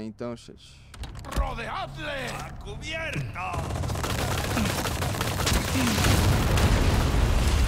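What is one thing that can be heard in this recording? Gunfire crackles and explosions rumble.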